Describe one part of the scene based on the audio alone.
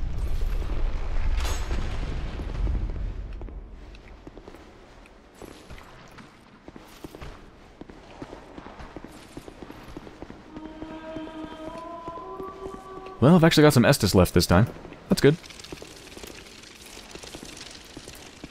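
Armoured footsteps clank steadily on stone.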